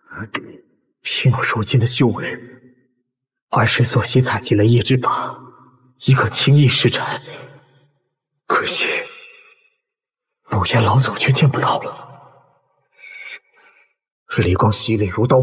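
A young man speaks slowly and solemnly, close by.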